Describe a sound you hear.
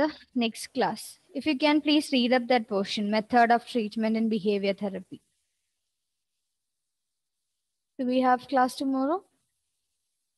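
A woman speaks calmly through a microphone, as if teaching.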